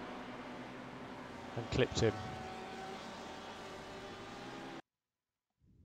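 Racing car engines roar as cars speed past.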